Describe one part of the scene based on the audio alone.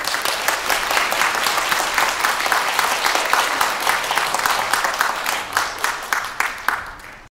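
An audience applauds loudly in a hall, then the clapping fades.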